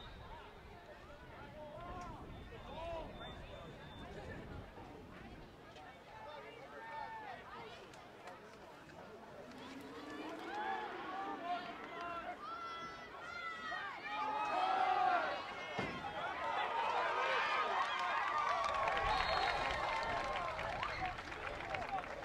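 A crowd of spectators cheers and shouts outdoors, growing louder as a play unfolds.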